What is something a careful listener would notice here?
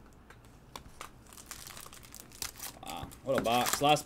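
A foil pack crinkles and tears open.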